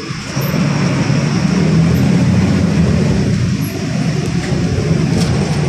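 A bus interior rattles and vibrates over the road.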